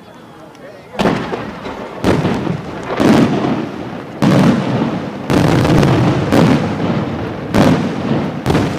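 Fireworks burst with loud, deep booms one after another.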